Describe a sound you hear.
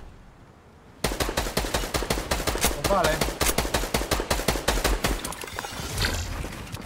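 Building pieces clatter rapidly into place in a video game.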